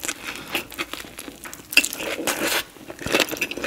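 A woman bites into a fresh spring roll with crisp, crunchy sounds close to a microphone.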